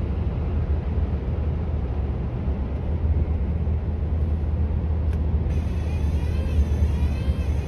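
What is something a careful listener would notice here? Tyres roar steadily on a motorway from inside a moving car.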